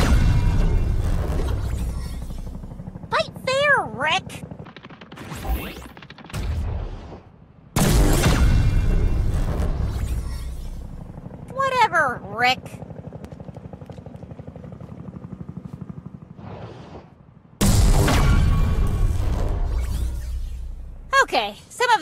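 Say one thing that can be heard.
A deep boom rumbles and slowly fades.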